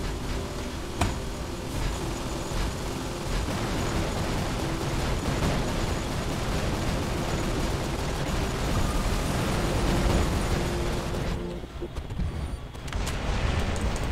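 A heavy robot stomps with loud metallic footfalls.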